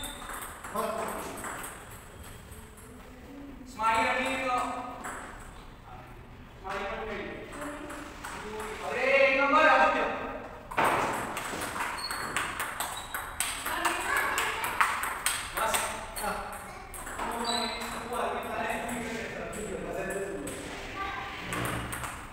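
A ping pong ball clicks back and forth on paddles and tables.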